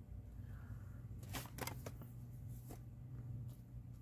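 Paper rustles as it is shifted.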